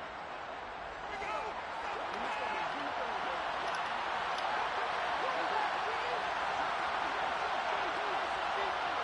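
A large crowd roars steadily in a big open stadium.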